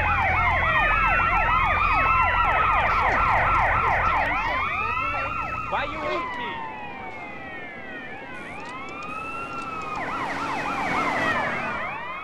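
Several police sirens wail over and over, overlapping.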